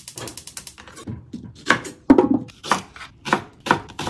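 A knife chops through a leek on a wooden board.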